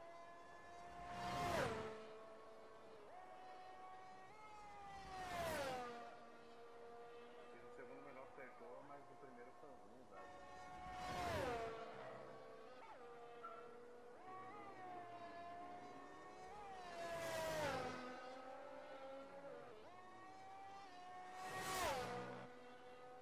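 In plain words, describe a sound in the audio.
Racing cars roar past one after another, swelling and fading quickly.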